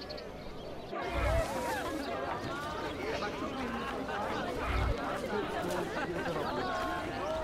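Footsteps tread on cobblestones.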